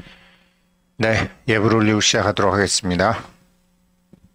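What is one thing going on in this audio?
A man chants in a deep voice nearby.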